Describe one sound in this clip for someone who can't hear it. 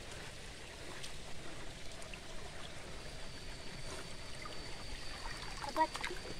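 A net swishes and splashes through shallow muddy water.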